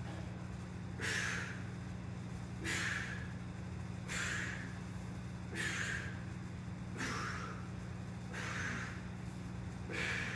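A man breathes out sharply in short, regular bursts.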